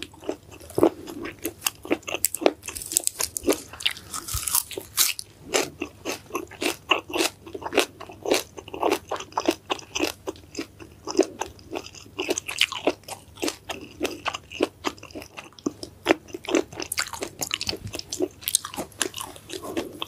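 A woman chews crunchy food close to a microphone with loud, wet crunches.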